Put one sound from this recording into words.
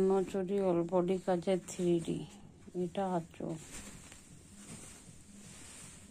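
Silk fabric rustles softly as hands spread it out.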